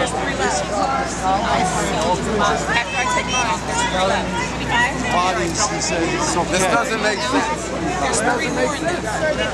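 A crowd of men and women talk over one another, close by, outdoors.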